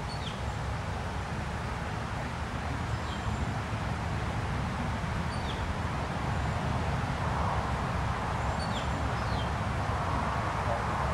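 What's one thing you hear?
Wind blows steadily outdoors, rustling leaves in the trees.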